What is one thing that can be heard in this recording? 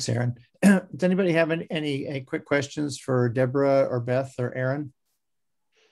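An older man speaks calmly through an online call.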